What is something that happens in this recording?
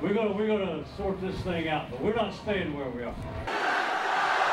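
An elderly man speaks loudly and firmly to a group, close by.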